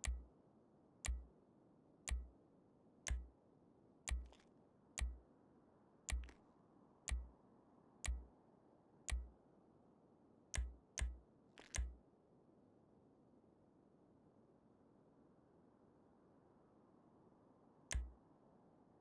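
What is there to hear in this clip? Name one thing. Short menu clicks sound one after another as options are switched.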